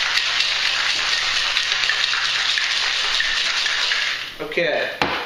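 Ice rattles rapidly inside a cocktail shaker.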